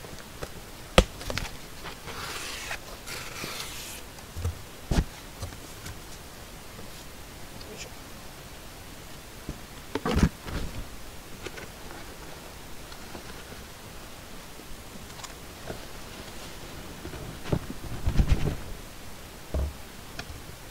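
Cardboard boxes knock and thud as they are moved.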